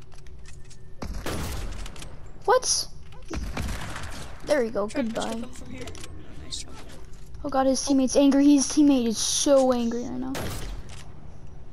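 A sniper rifle fires loud single shots.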